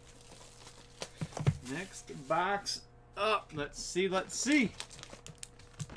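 Hands open a cardboard box.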